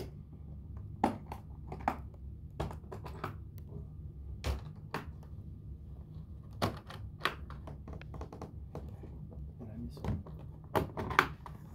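Latches on a guitar case click and snap.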